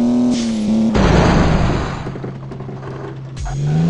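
A metal crash bangs loudly.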